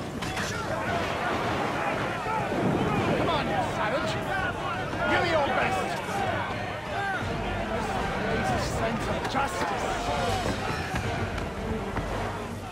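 A crowd of men cheers and jeers loudly.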